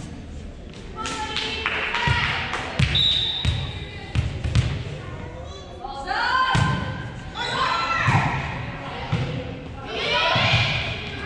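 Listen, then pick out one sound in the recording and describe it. Young girls shout and call out to each other in a large echoing gym.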